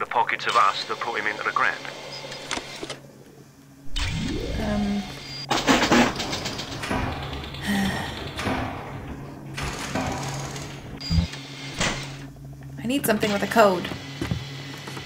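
A young woman talks through a microphone, with animation.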